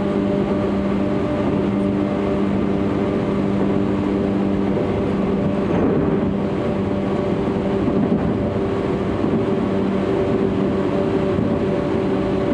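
A train hums and rumbles steadily along the tracks.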